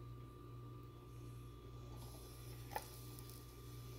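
Shrimp sizzle faintly in hot oil.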